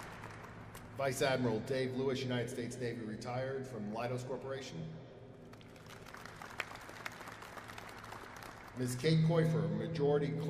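A man speaks steadily into a microphone, heard through loudspeakers in a large echoing hall.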